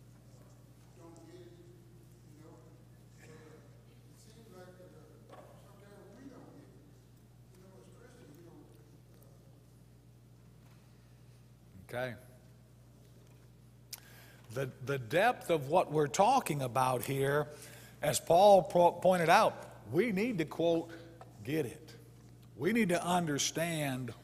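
A man preaches with animation through a microphone in a large hall, his voice quiet at first and then loud and emphatic.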